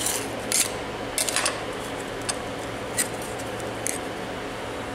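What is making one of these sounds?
A plastic print clicks and scrapes as it is pried off a metal plate.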